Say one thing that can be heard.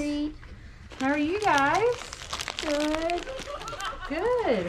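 Candy wrappers rustle in a bowl.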